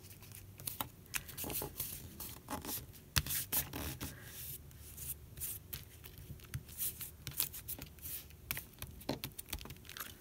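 Hands rub and smooth paper against a surface.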